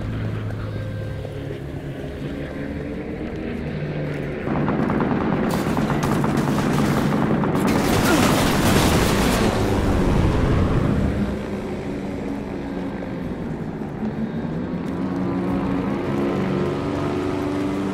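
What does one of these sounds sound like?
An aircraft engine drones steadily nearby.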